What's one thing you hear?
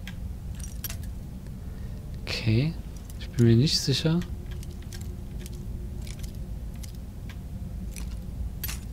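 A metal lockpick scrapes and clicks softly inside a lock.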